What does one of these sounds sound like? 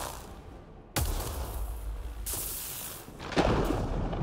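Thunder cracks loudly and rumbles.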